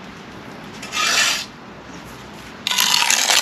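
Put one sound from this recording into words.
A steel trowel scrapes mortar off brick.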